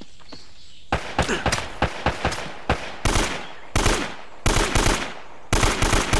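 A rifle fires rapid bursts of gunfire.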